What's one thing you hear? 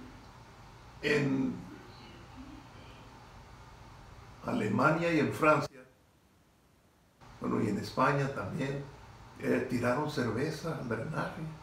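An elderly man speaks calmly and close up, with pauses.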